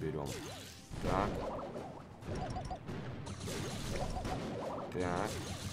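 Electronic game effects chirp and zap in quick bursts.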